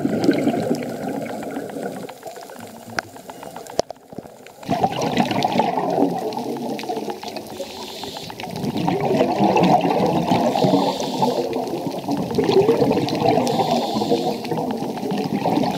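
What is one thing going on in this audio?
Air bubbles from a diver's breathing gear gurgle and rumble underwater.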